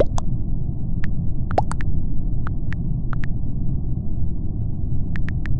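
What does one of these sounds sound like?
Soft keyboard clicks tap out a few letters.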